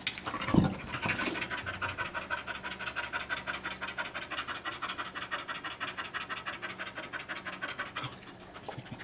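A dog pants quickly and steadily.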